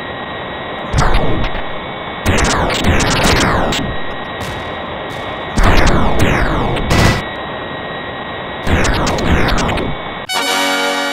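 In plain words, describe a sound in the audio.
Missiles launch with sharp whooshes.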